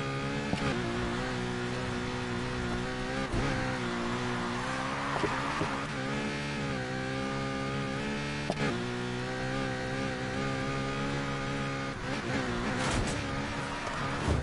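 Tyres screech as a car drifts through corners.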